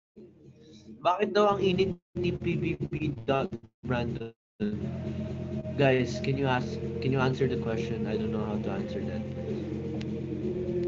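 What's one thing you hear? A young man talks casually and close up through a phone microphone.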